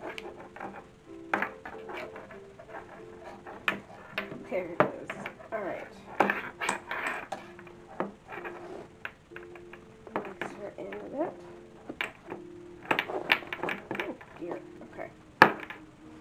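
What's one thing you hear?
A porcelain doll knocks and taps lightly against a hard surface.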